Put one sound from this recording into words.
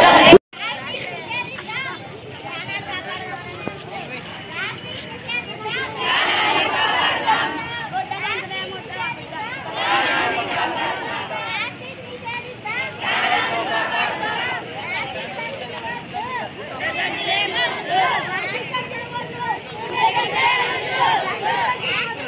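A crowd of children and teenagers talk and shout outdoors.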